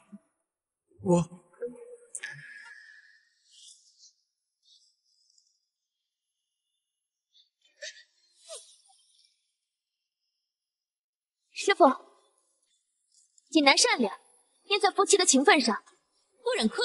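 A young man speaks with surprise.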